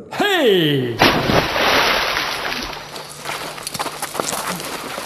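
Several men scuffle and stamp in loose dirt.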